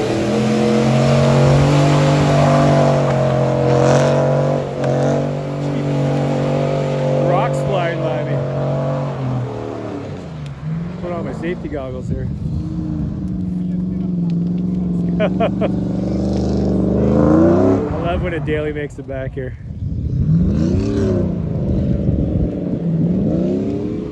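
Tyres spin and spray through wet mud.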